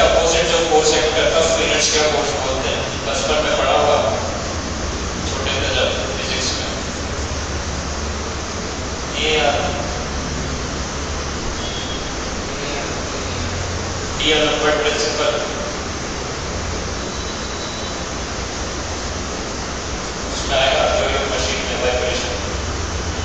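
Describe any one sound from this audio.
A man speaks calmly in short bursts with long pauses.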